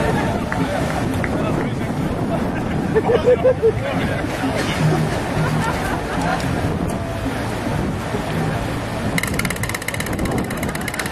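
A young man speaks loudly to a crowd outdoors.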